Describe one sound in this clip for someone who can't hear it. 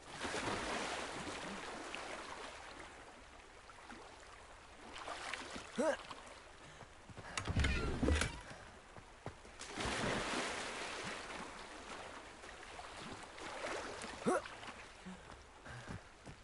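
Water rushes and splashes in a stream.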